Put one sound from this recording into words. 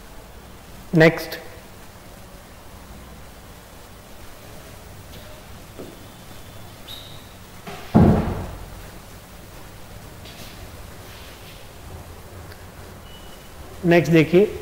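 A man speaks loudly in short bursts, close to a microphone.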